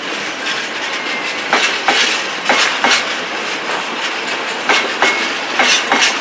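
Metal wheels squeal faintly against the rails.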